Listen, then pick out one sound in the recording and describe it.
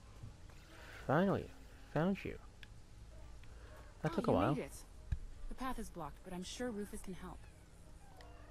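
A young girl speaks with animation nearby.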